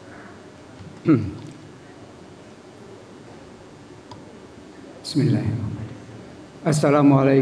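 An elderly man speaks and chants through a microphone and loudspeaker in an echoing hall.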